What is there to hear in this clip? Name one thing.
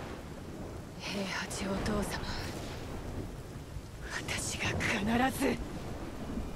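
A young woman speaks slowly and emotionally, close by.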